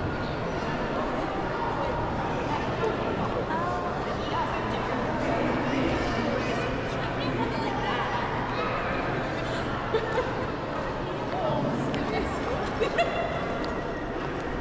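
A crowd of visitors chatters in a large echoing hall.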